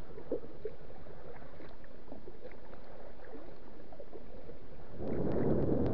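Water splashes and trickles around a kayak paddle.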